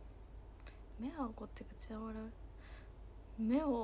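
A young woman speaks close to a microphone in a lively, expressive voice.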